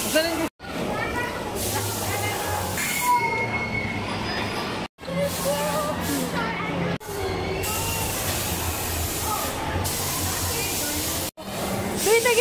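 Children shout and chatter in an echoing hall.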